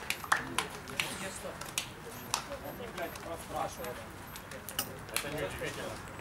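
Players slap hands in quick handshakes.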